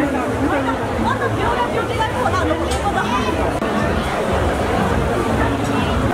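A crowd of men and women chatter at once, close by.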